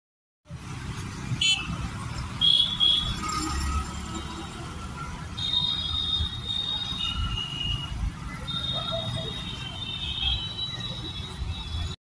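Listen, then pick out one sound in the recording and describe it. Traffic rumbles past steadily outdoors.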